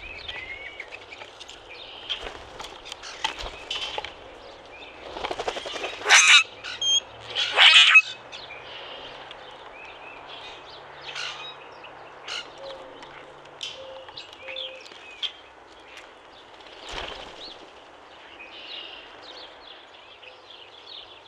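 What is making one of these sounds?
Grackles give loud, harsh creaking squeaks close by.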